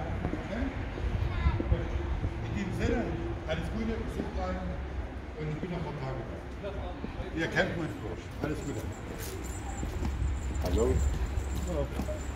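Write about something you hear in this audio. Adults and children talk nearby outdoors.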